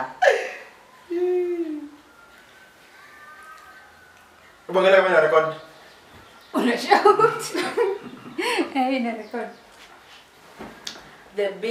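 A young woman talks and laughs, close by.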